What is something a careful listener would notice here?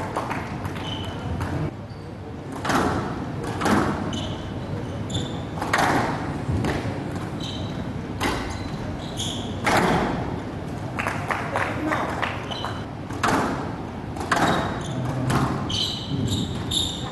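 A squash ball smacks against the walls and rackets in quick rallies.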